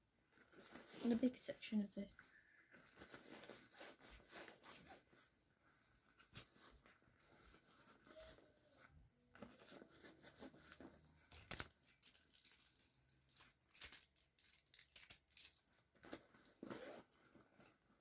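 A zipper rasps open and shut.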